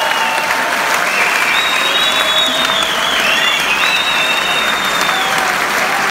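A large crowd cheers and screams loudly, close by.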